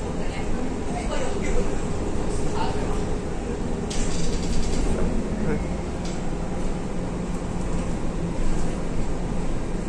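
A bus body rattles and creaks over bumps.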